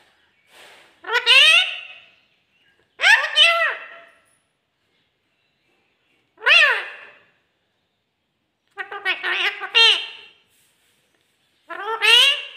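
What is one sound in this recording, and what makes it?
A parrot screeches loudly in short harsh bursts.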